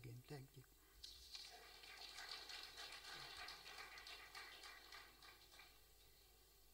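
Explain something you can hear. An audience laughs softly.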